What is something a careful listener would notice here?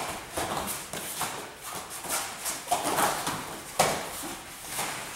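Feet shuffle and thud on a padded mat.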